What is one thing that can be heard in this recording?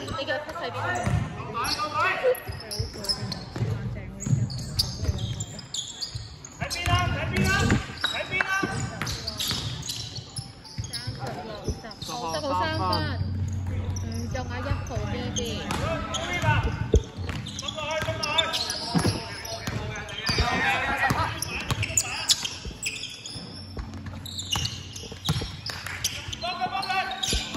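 Sneakers squeak on a hall floor.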